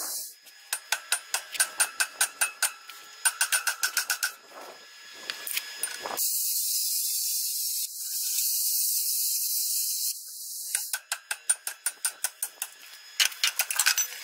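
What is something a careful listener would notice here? A hammer strikes metal in quick, ringing blows.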